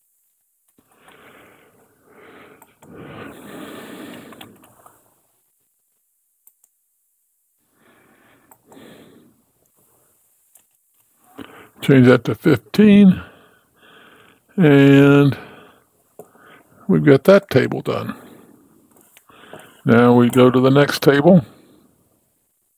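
An older man talks calmly into a microphone, with pauses.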